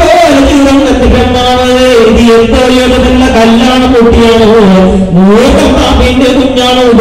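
A man sings through a microphone in a steady, drawn-out voice.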